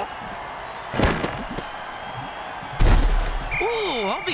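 Armoured players crash into each other with heavy thuds.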